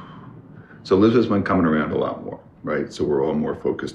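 A middle-aged man speaks calmly nearby.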